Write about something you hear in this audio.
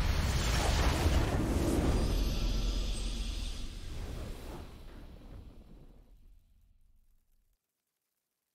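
A triumphant game victory fanfare plays loudly and slowly fades away.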